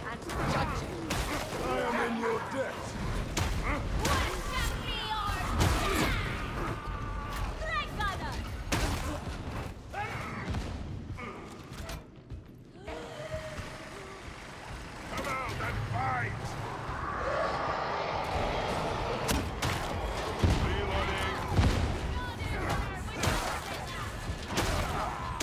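Blades slash and thud into bodies.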